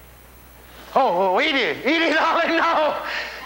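An elderly man declaims loudly and dramatically.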